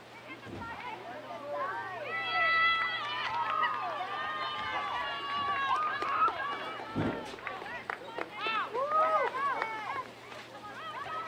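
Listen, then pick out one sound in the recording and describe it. Young women shout and cheer across an open field.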